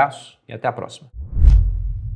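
A young man speaks calmly, close to a microphone.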